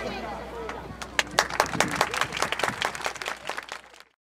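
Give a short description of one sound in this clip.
An outdoor crowd claps and applauds.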